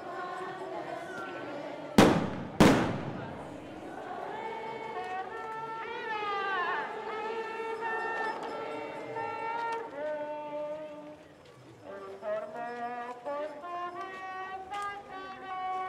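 A crowd of men and women murmurs outdoors.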